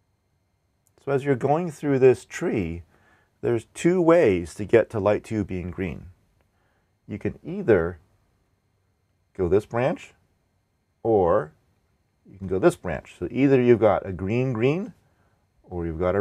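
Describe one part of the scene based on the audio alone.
A man speaks calmly and explains things close to a microphone.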